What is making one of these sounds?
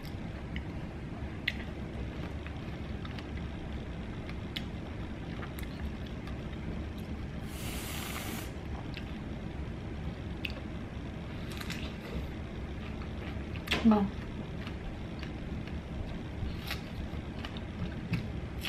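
A woman bites and chews juicy strawberries close up.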